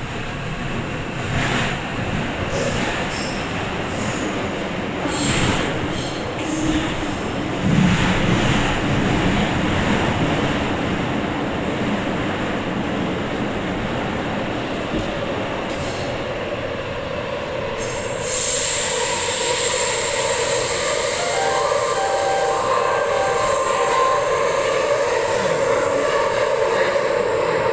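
A subway train rumbles and rattles steadily along the tracks.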